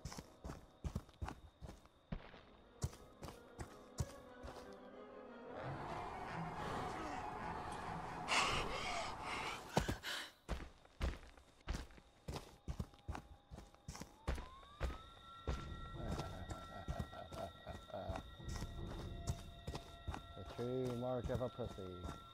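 Footsteps crunch over dry leaves.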